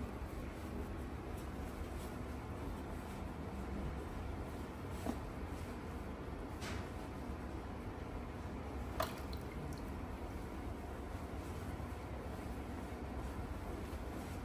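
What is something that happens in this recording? A towel rubs against wet skin.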